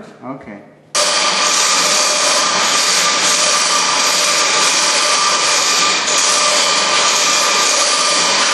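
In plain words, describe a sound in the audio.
A large machine runs with a loud, steady roar and hum.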